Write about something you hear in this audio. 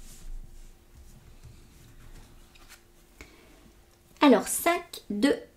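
A card slides and taps softly on a table.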